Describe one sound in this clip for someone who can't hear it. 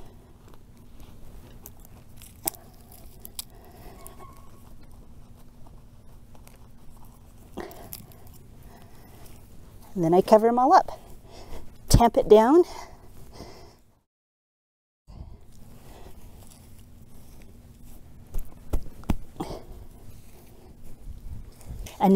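Hands scrape and pat loose soil, with a soft crumbly rustle.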